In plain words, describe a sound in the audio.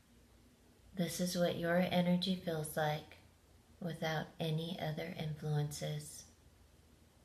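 A middle-aged woman speaks calmly and close up.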